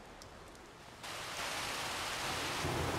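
A water jet sprays with a steady rushing hiss.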